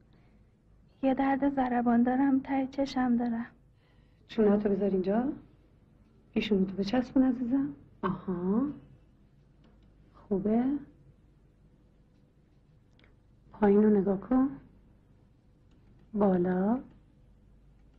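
A woman speaks calmly, close by.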